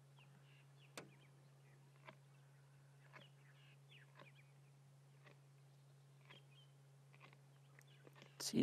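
Bones crunch and crack between a lioness's teeth.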